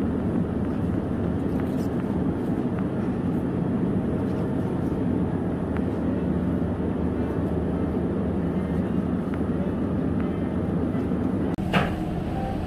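Eggplants bump and rub softly as a hand picks through them.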